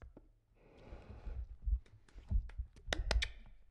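A man talks animatedly into a microphone, close by.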